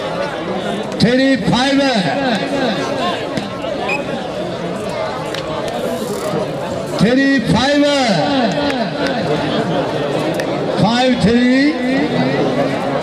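A man chants loudly in quick repeated bursts.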